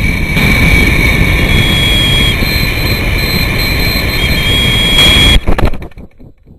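Air rushes hard past a falling model rocket.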